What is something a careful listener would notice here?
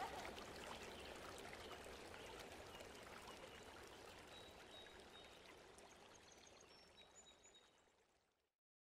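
A fast river rushes and splashes over rocks, slowly fading away.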